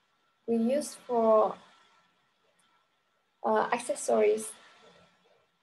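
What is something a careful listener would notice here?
A young woman speaks calmly and clearly into a nearby microphone, in two short phrases.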